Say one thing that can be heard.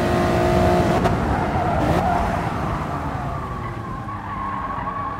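A racing car engine drops in pitch as the car brakes.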